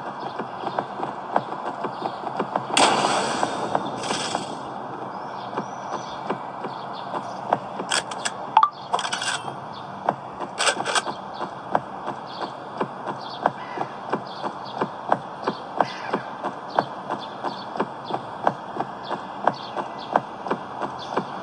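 Footsteps patter quickly and steadily on hard ground.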